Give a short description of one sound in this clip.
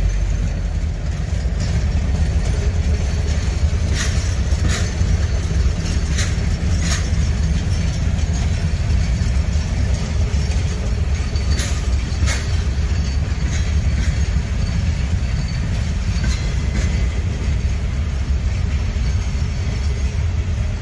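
Train carriages rumble past on the track.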